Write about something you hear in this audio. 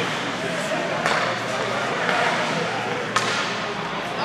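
A hockey stick sharply smacks a puck.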